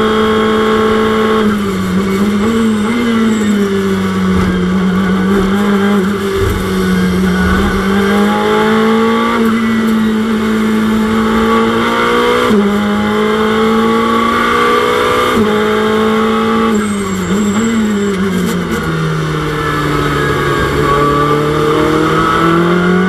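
A race car engine roars steadily, rising in pitch and dropping sharply with each gear change.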